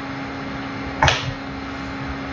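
A plastic stencil knocks against a drawing board.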